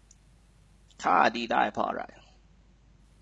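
A young man speaks briefly through a computer microphone on an online call.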